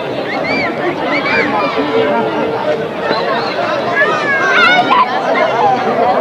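A crowd of men chatter and shout outdoors.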